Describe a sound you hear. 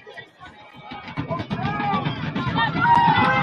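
A crowd cheers loudly as a football play unfolds.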